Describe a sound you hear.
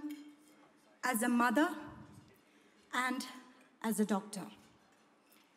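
A woman speaks with emotion into a microphone, heard through loudspeakers in a large hall.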